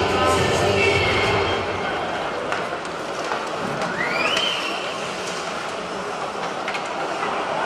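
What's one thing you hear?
Skates scrape and hiss across the ice in a large echoing arena.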